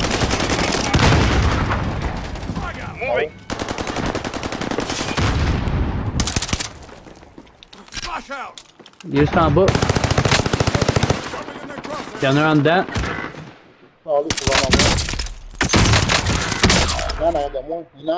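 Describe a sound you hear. Rifle shots crack loudly, again and again.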